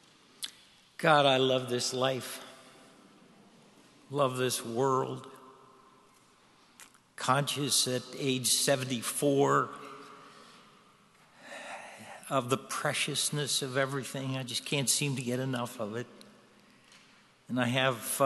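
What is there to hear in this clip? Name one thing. An elderly man speaks calmly through a microphone in a large echoing hall, with pauses.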